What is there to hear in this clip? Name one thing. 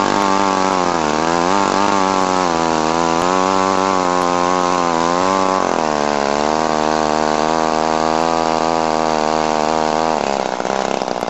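A powered ice auger drills into ice.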